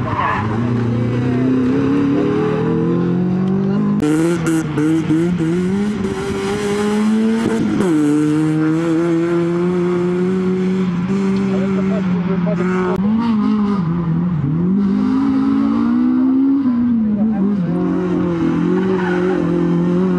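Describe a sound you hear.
A rally hatchback's engine revs hard at full throttle outdoors, rising and falling through the gears.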